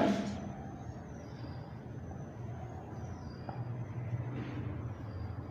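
A marker squeaks faintly across a whiteboard.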